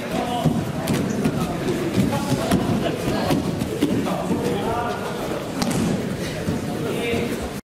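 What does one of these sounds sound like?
Bare feet shuffle and squeak on a mat.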